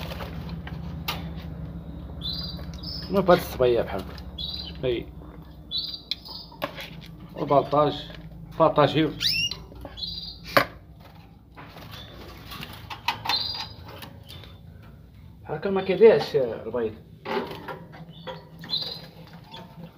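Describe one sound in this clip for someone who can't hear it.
A budgie chirps and squawks nearby.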